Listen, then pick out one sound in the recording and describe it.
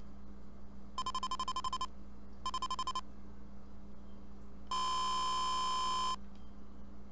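Electronic game beeps chime in short bursts.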